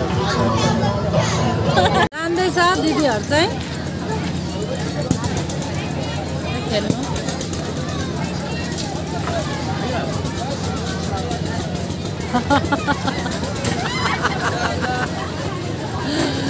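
A crowd chatters steadily all around outdoors.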